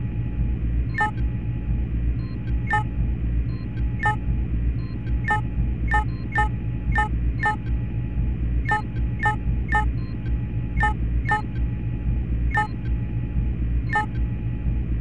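Short menu clicks sound again and again.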